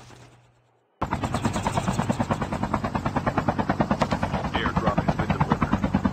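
A helicopter's rotor thumps rapidly.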